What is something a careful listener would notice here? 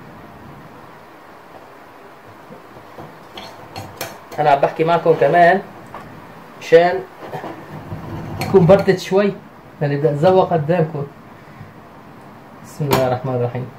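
A knife cuts through crusty pizza and scrapes against a plate.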